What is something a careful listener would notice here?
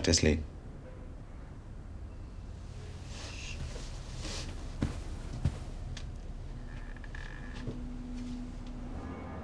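A young girl breathes softly nearby.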